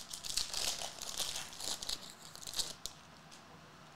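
Foil card wrappers crinkle and rustle as they are torn open.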